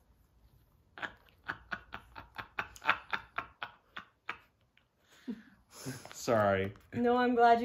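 A man laughs heartily nearby.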